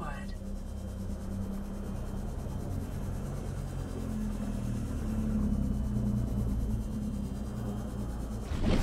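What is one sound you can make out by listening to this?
A small submarine's engine hums low and steady underwater.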